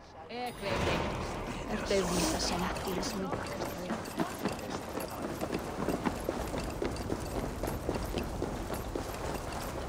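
Footsteps thud on wooden boards and crunch on snow.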